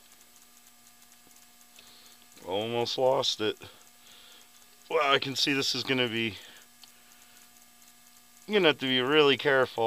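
A ratchet wrench clicks.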